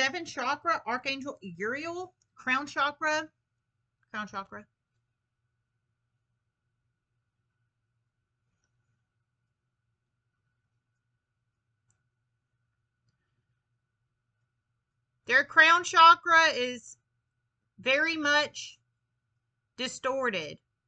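A young woman talks calmly and close by, with pauses.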